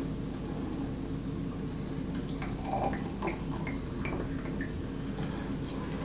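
Sparkling wine fizzes as it is poured into a glass.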